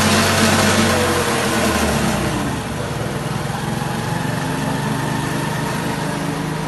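A motorcycle engine idles close by with a steady, throbbing rumble.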